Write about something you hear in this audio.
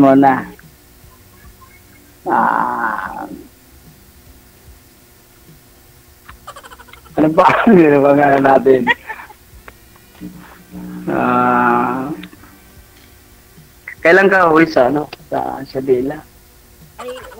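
A middle-aged man talks and laughs over an online call.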